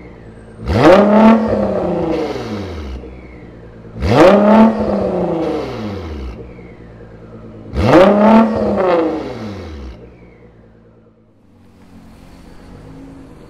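A car engine idles with a low burble.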